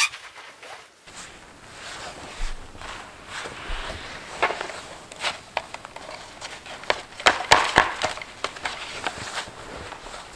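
Footsteps crunch in snow outdoors.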